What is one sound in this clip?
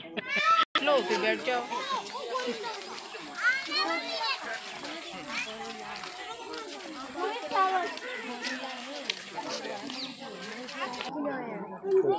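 Children chatter and talk nearby.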